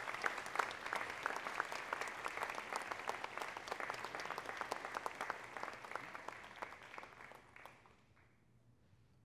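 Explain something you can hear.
An audience claps in a large echoing hall, then the clapping dies away.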